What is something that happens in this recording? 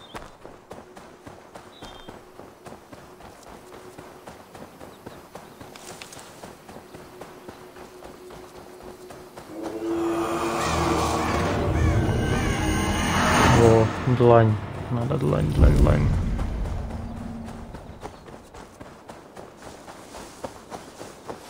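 Footsteps brush through tall grass.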